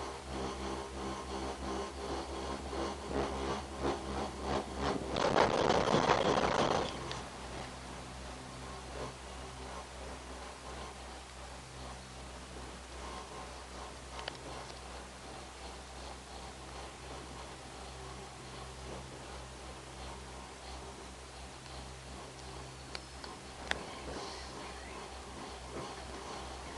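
A cable car hums and rattles steadily as it rides along its cable.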